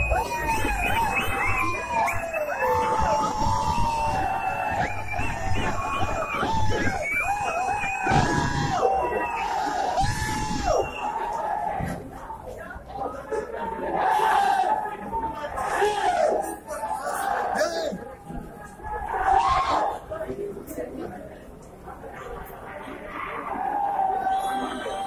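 A crowd of men shouts and chants loudly and close by.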